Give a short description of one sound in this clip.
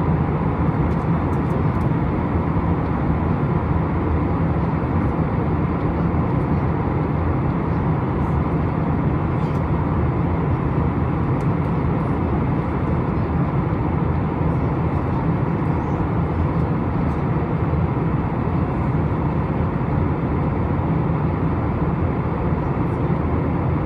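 Jet engines roar steadily and low inside an aircraft cabin.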